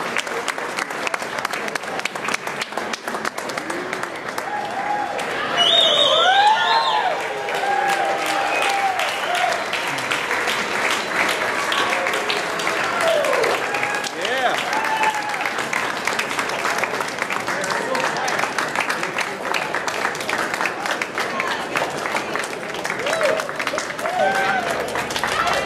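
A large crowd claps and cheers loudly.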